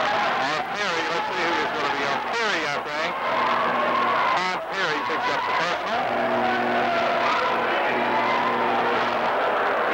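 A large crowd cheers and chatters in an echoing gym.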